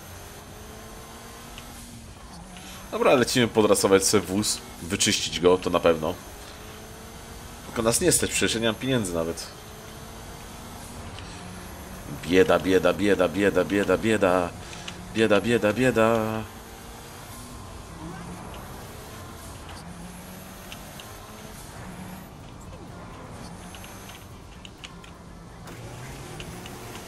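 A car engine revs and shifts gears as the car speeds along.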